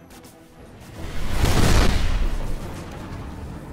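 A loud energy burst whooshes up and fades.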